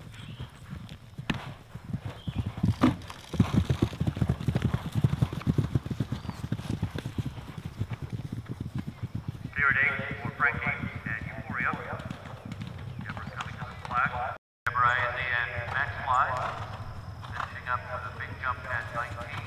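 A galloping horse's hooves thud rhythmically on grass.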